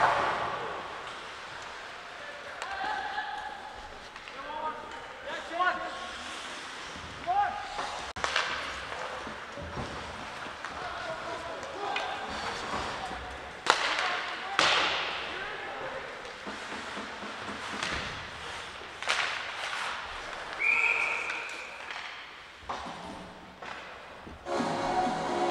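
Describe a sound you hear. Skates scrape and hiss across ice in a large echoing rink.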